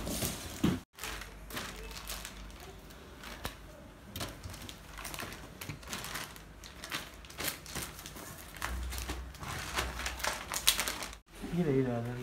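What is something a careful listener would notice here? Plastic bags crinkle and rustle as hands handle them.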